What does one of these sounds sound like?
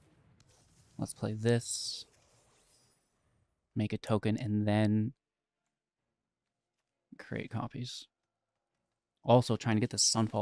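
A young man talks with animation, close to a microphone, in short bursts.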